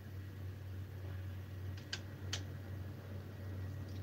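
A door opens with a click of its handle.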